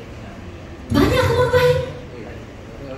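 A man speaks briefly into a microphone in an echoing room.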